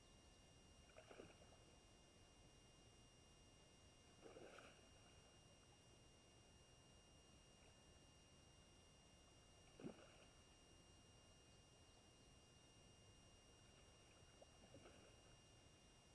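A fish splashes and thrashes in the water nearby.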